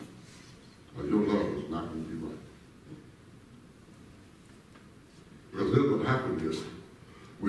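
A man speaks into a microphone, heard through loudspeakers in a large echoing hall.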